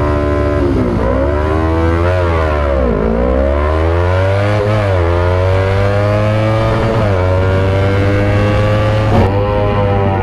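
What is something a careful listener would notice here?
A motorcycle engine accelerates hard through its gears, the pitch climbing and dropping with each gear change.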